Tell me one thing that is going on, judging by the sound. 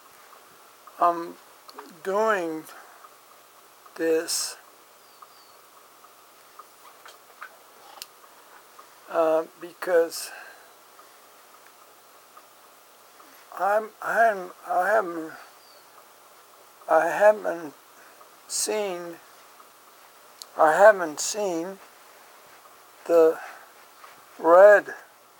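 A man talks close by, in short bursts with pauses.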